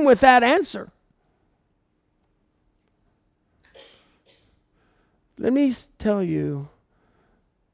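A middle-aged man speaks calmly into a headset microphone, in short phrases with pauses.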